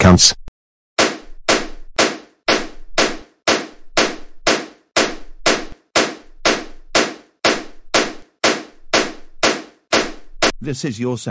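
Punches land with quick, repeated thuds.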